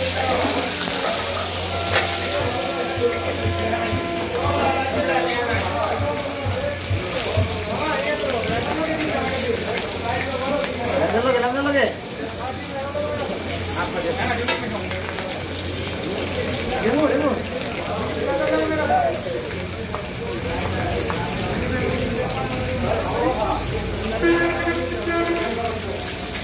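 A metal spatula scrapes and taps against the griddle.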